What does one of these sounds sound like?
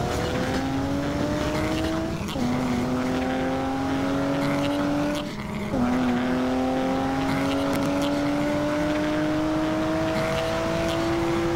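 A car engine hums steadily, rising in pitch as it speeds up and dropping briefly at each gear change.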